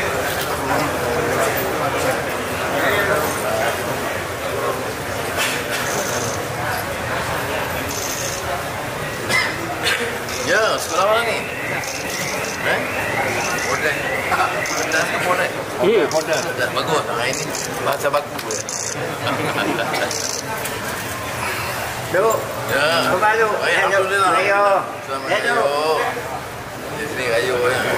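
A dense crowd of men chatters and calls out loudly all around, close by in an echoing hall.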